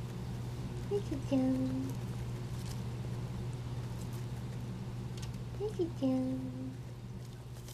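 A guinea pig squeaks in short, rising chirps close by.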